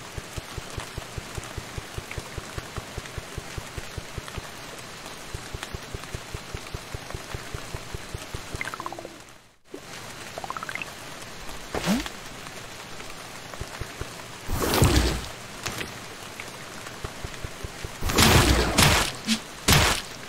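Game sound effects blip and thud.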